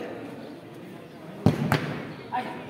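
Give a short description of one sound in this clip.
A ball is kicked hard on an indoor court.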